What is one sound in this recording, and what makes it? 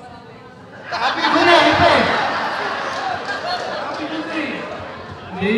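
A crowd laughs and cheers.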